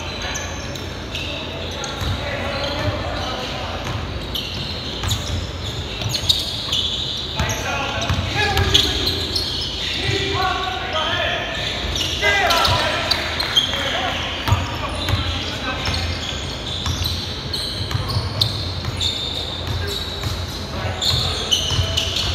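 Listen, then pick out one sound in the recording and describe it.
A basketball bounces on the floor, echoing in a large hall.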